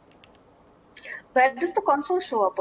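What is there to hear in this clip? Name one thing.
Another young woman talks with animation over an online call.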